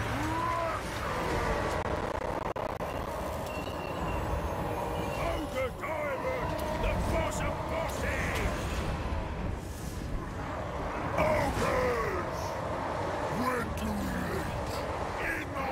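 Battle noise of clashing weapons and shouting crowds rumbles steadily.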